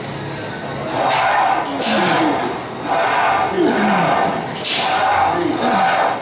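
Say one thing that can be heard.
A man grunts and strains with effort.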